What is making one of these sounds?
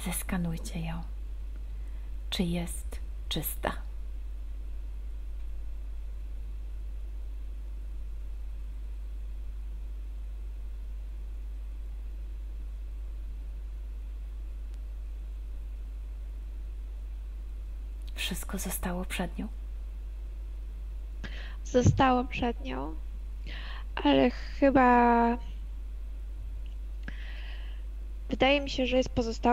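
A woman speaks calmly in short bursts over an online call.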